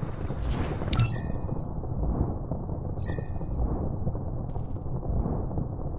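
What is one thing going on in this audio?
Short, bright game menu chimes ring out a few times.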